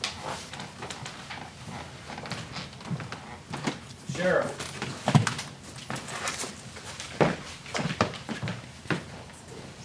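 Papers rustle and shuffle on a table.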